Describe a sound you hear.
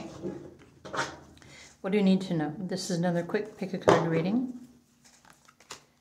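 Playing cards are shuffled by hand.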